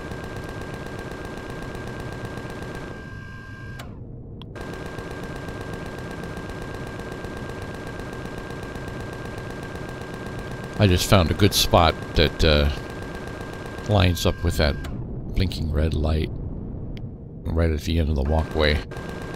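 A spacecraft's engines hum steadily.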